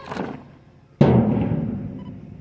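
A squad of soldiers stamps their boots down together in one loud beat.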